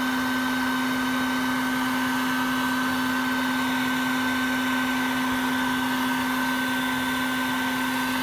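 Bees buzz loudly in a dense swarm.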